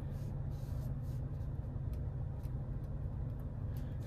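A fingertip taps lightly on a touchscreen.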